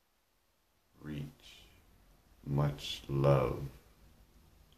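A man speaks briefly, close to the microphone.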